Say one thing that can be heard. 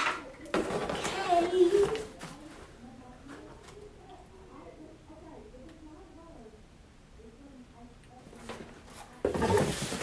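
Cardboard rustles and scrapes as a box is unpacked.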